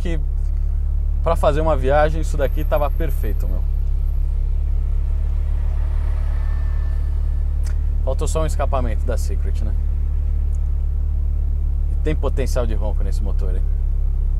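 A man talks calmly and close by, through a clip-on microphone.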